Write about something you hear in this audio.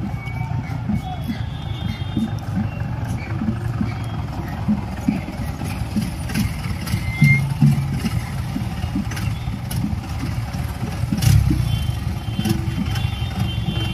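Footsteps of a crowd shuffle along a road outdoors.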